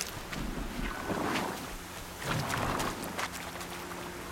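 Leafy bushes rustle as they are brushed aside.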